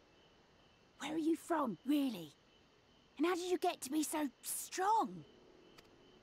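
A young boy speaks with animation.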